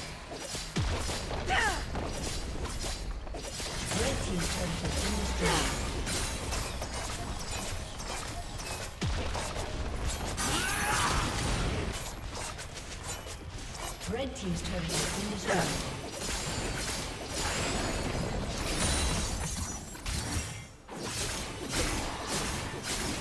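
Game spell blasts and hits crackle in quick bursts.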